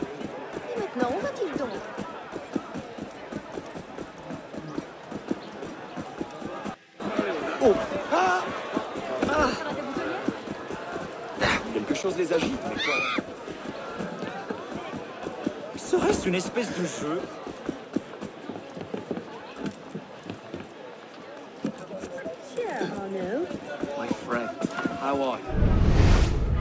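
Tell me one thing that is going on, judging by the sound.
Footsteps run fast over cobblestones.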